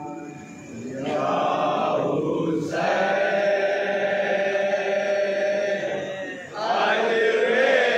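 A crowd of men chants along in unison.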